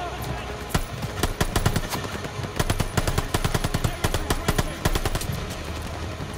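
Gunfire crackles in rapid bursts nearby.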